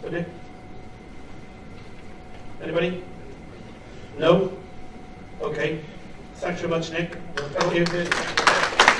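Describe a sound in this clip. A man speaks slowly through a microphone in a room, with pauses between phrases.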